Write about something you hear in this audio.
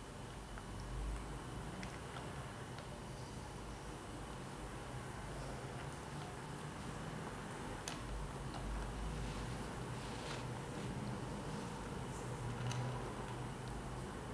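A kitten crunches dry food from a plastic bowl close by.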